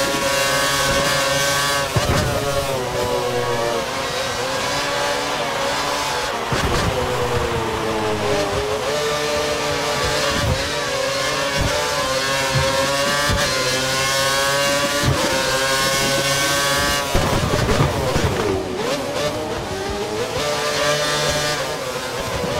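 A racing car engine screams at high revs, rising and dropping in pitch as it shifts gears and brakes.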